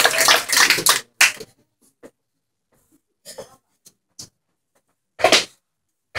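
A guitar plays flamenco strums in short bursts.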